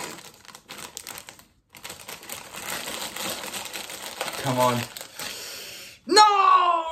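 A plastic wrapper crinkles and rustles.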